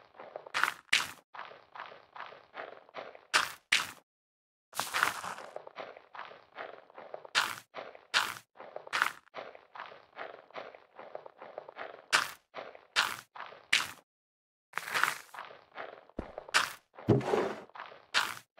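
Small items are picked up with short, bright pops.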